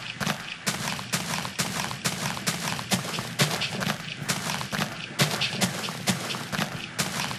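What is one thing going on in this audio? A shovel digs into dirt in a video game with repeated crunching thuds.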